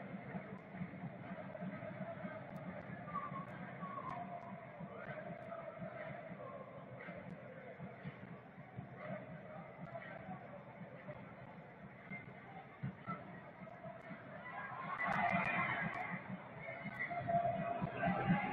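A large stadium crowd chants and cheers steadily, swelling louder near the end.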